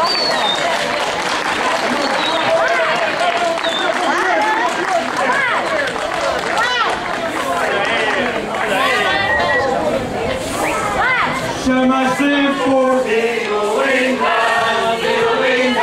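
A group of men and women sing together outdoors.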